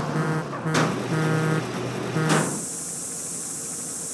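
A metal garage door rolls shut.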